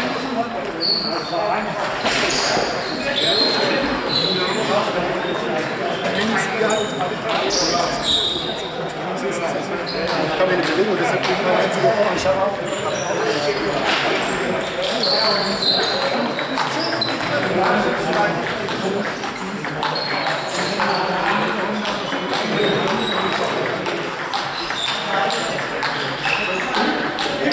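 Elderly men chat with one another in a large echoing hall.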